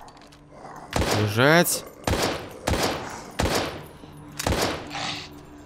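A pistol fires several loud shots that echo in a room.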